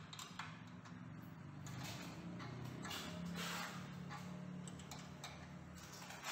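A wrench scrapes and clicks as it turns a bolt.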